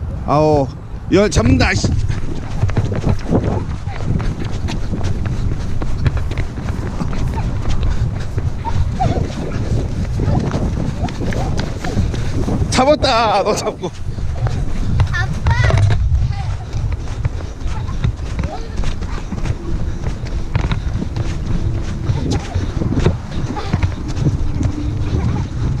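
Footsteps run over paving and dry grass.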